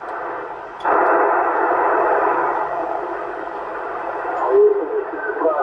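A CB radio transceiver hisses with static.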